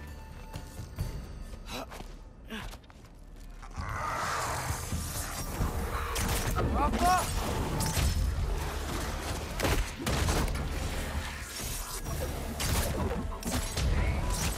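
A staff swings through the air with sharp whooshes.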